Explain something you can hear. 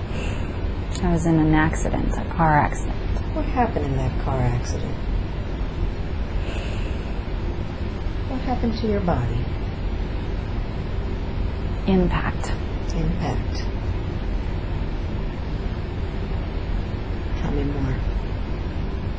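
A young woman murmurs and moans sleepily, close by.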